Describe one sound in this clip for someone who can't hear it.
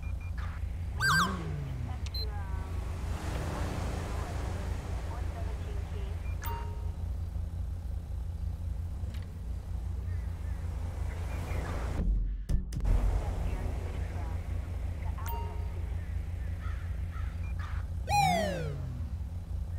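A police siren gives short whooping chirps.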